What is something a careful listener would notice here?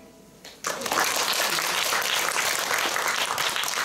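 An acoustic guitar is strummed close by.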